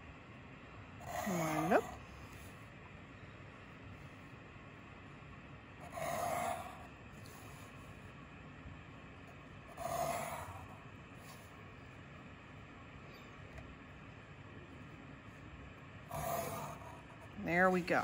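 A pencil scratches along a ruler, drawing lines on paper.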